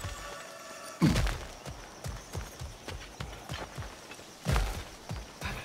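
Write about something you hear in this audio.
A heavy thud lands as a figure drops to the ground.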